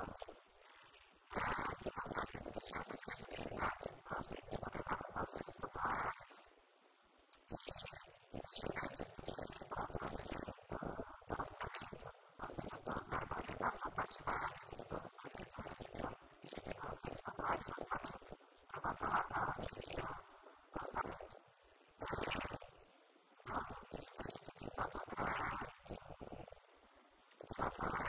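A woman speaks with animation into a microphone, heard through a loudspeaker.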